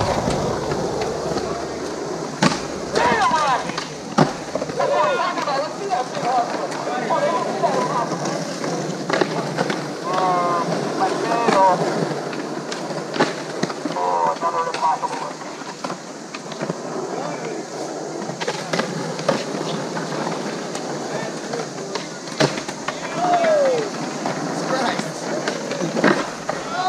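Skateboard wheels roll and rumble over concrete outdoors.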